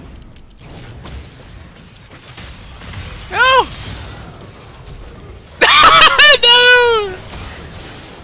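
Game spell effects whoosh and chime during a fight.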